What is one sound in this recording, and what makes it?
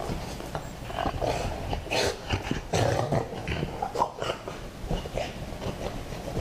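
Paws scuffle on a rug.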